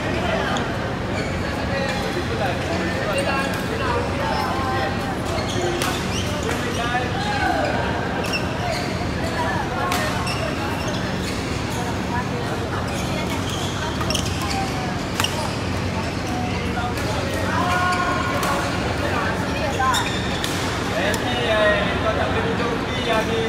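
Men chatter and call out, echoing in a large hall.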